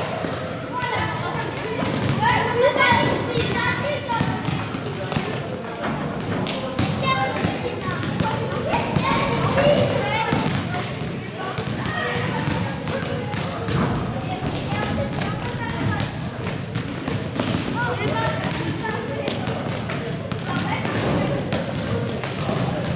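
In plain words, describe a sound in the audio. Children shout and chatter with high voices, echoing around the hall.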